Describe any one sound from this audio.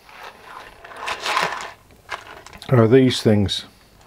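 Small parts rattle in a plastic tub as a hand rummages through them.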